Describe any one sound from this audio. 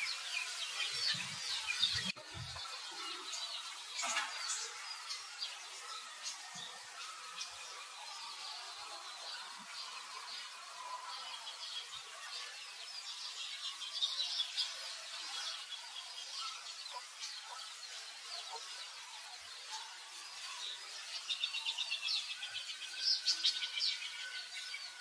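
A baby monkey cries with high, thin squeals.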